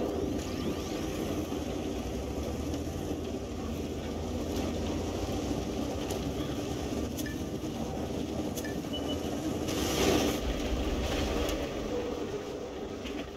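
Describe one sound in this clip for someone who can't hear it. A heavy engine rumbles steadily.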